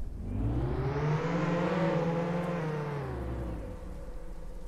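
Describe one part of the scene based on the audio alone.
A car engine revs up, holds, and then eases off.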